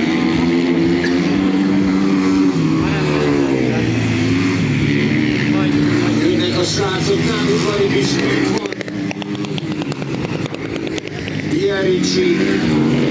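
Motorcycle engines roar loudly past, rising and falling in pitch.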